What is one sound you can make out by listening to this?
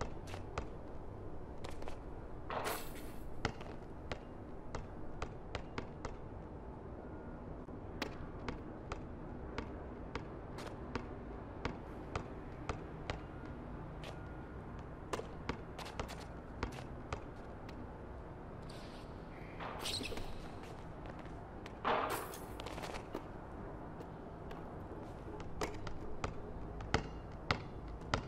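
Basketballs bounce on a hard court over and over.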